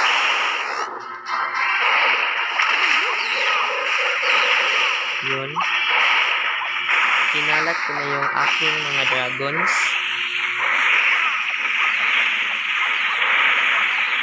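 Cartoonish battle noises clatter and crackle throughout.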